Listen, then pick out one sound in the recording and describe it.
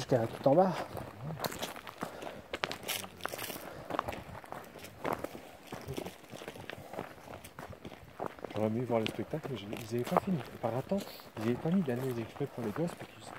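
Footsteps crunch steadily on a gravel path.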